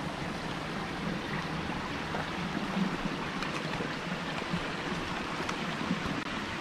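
A small stream trickles and gurgles over rocks close by.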